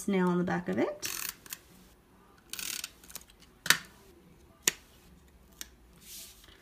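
Paper rustles and taps as a small card is handled.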